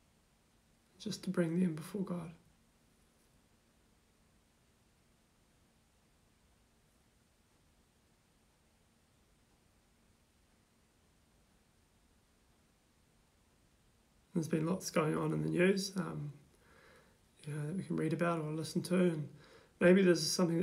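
A young man speaks calmly and close by, with pauses.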